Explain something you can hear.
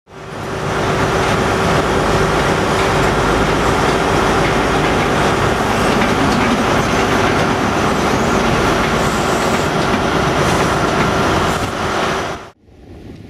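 A train rumbles slowly along the tracks.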